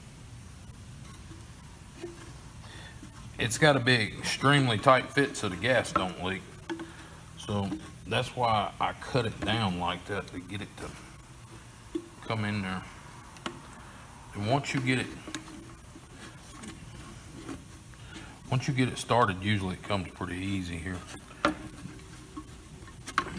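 A tool scrapes and clicks against a hard plastic tank.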